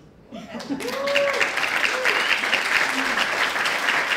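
A woman laughs near a microphone.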